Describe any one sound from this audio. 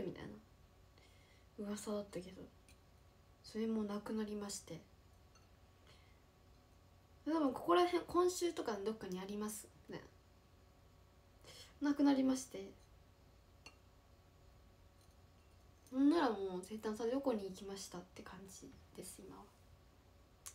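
A young woman speaks softly and calmly, close by, in short bursts with pauses.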